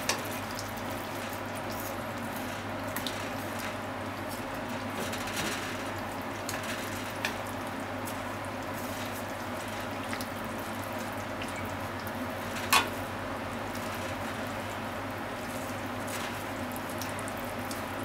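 Chopsticks click and tap against a frying pan.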